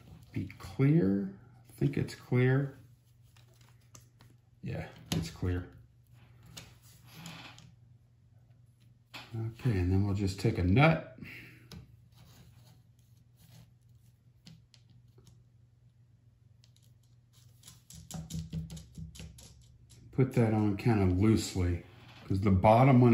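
Small plastic parts click and tap together.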